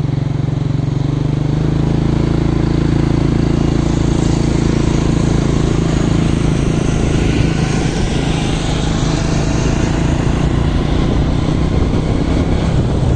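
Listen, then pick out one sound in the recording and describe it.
A motorbike engine hums steadily close by.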